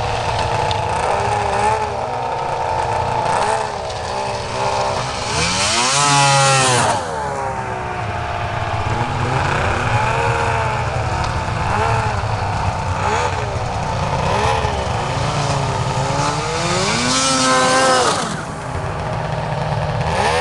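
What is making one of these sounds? A snowmobile engine idles and putters nearby.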